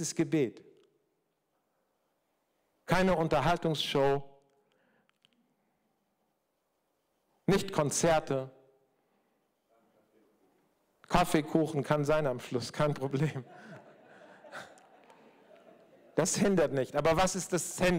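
A middle-aged man speaks calmly into a microphone in a large echoing room, with pauses between phrases.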